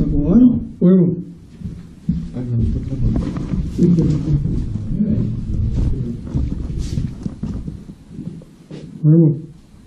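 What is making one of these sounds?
Men talk in low voices nearby, heard in an echoing room.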